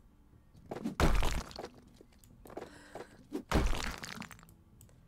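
A sledgehammer smashes through a brick wall with heavy crashes.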